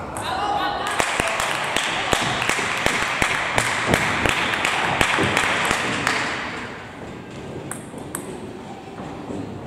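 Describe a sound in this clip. A table tennis ball clicks back and forth off paddles and a table in a large echoing hall.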